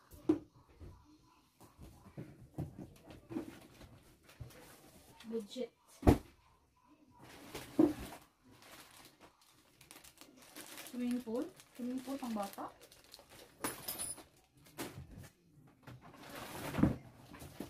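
Cardboard rustles and thumps as a box is rummaged through.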